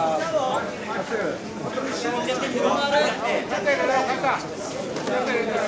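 A large crowd murmurs and talks in the background.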